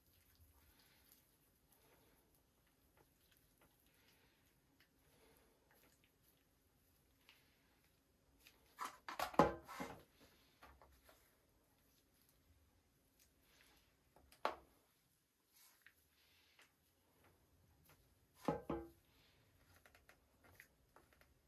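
A wooden stick stirs and scrapes thick paste filler in a plastic cup.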